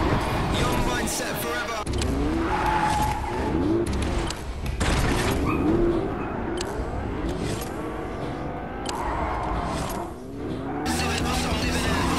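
A car engine roars and revs.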